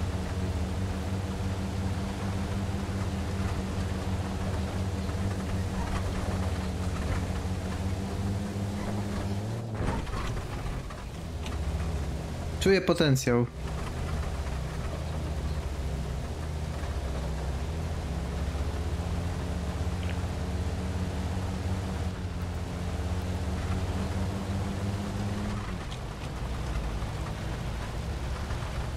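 A vehicle engine hums steadily and shifts pitch as it drives.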